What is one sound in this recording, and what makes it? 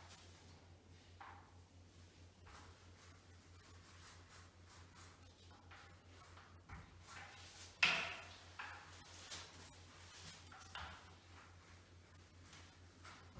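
A paint roller rolls over a wall with soft, sticky swishes.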